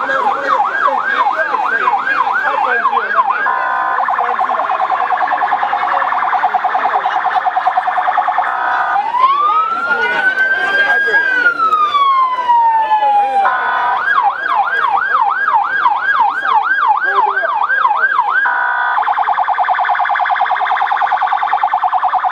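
A siren wails, yelps and rises and falls close by.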